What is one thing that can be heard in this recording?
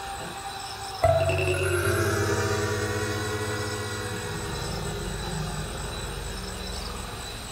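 A deep zither note rings out suddenly and slowly fades.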